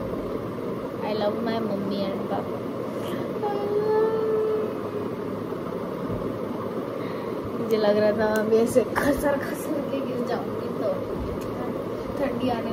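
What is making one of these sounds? A young girl speaks casually close by.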